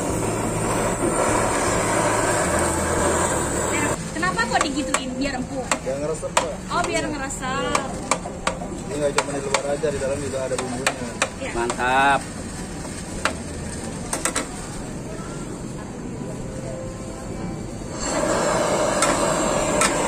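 A blowtorch roars steadily.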